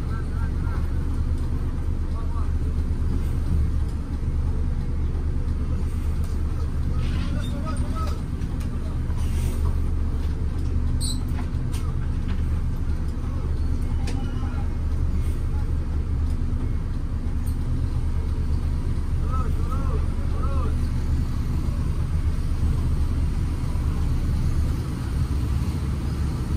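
A bus engine rumbles low and steady from inside the cab.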